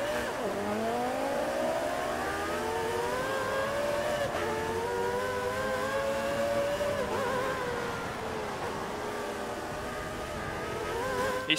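A racing car engine revs high, rising in pitch and dropping at each gear change.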